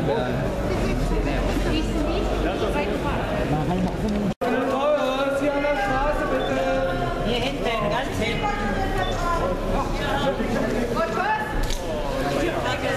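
A crowd of men and women chatters loudly nearby in a large echoing hall.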